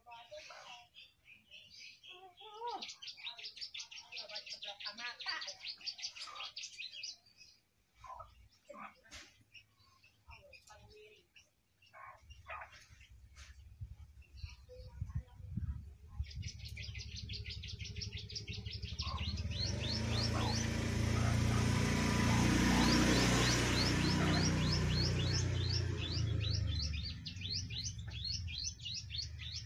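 A small caged bird sings a fast, trilling chirp, close by.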